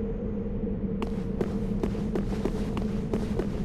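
Footsteps in armour clank on stone.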